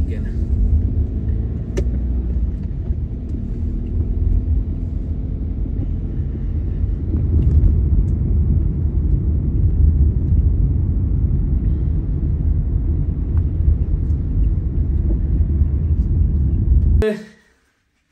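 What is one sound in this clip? Tyres rumble on a wet road.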